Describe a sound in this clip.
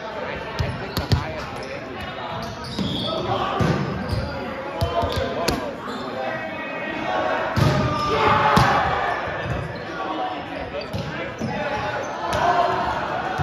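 A volleyball is hit with sharp smacks in a large echoing gym.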